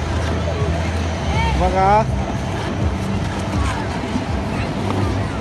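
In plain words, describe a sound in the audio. Ice skates scrape and glide over ice.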